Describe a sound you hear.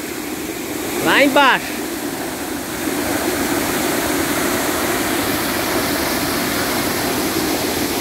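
A waterfall rushes and splashes steadily nearby.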